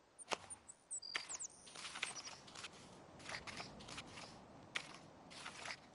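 Pages of a book flip over.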